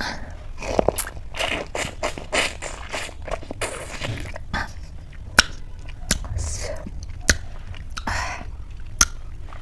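A woman sucks and licks food from her fingers close to a microphone.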